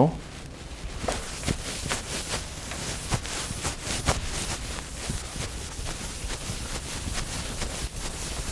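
A board eraser rubs and scrapes across a chalkboard.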